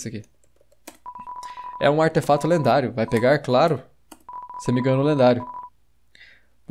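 Rapid electronic blips chatter as game text types out.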